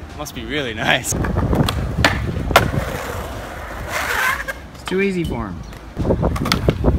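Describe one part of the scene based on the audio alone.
A skateboard clacks against a ledge.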